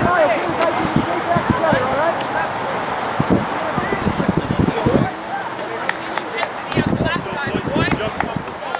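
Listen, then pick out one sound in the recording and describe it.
Young men call out to each other from a distance across an open field.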